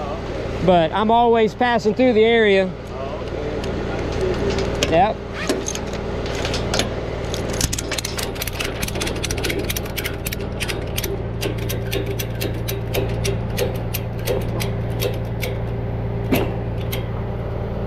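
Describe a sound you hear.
A truck engine idles with a low, steady hum.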